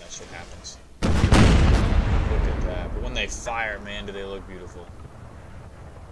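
A cannon fires with a loud boom that rumbles away.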